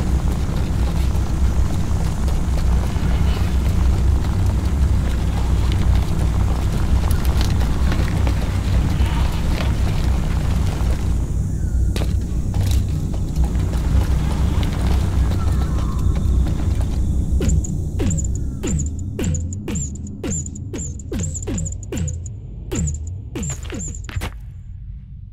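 A heavy stone wheel rolls and rumbles along the ground.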